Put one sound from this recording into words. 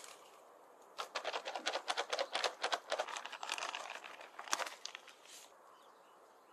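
Potting soil pours from a sack into plastic planters with a gritty patter.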